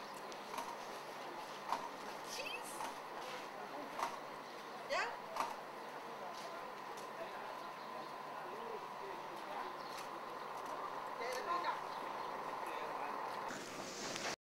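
A crowd of adults chatters outdoors at a distance.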